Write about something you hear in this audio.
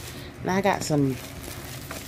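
Plastic wrapping crinkles under a hand.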